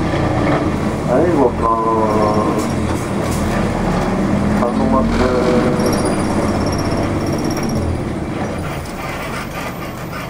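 Tyres rumble on the road as the car drives off.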